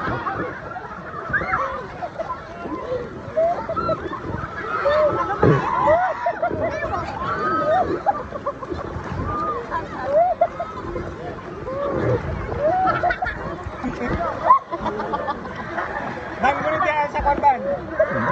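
Children and adults shout and squeal excitedly nearby.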